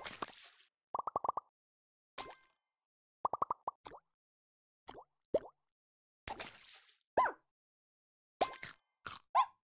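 Soft bubbly popping sounds bounce up and down in pitch.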